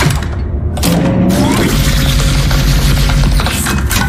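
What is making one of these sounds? A metal lever clunks as it is pulled.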